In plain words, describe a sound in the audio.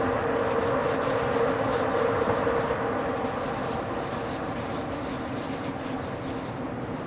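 A train's motor hums with a steady tone.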